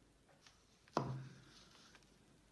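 A pistol is set down on a table with a knock.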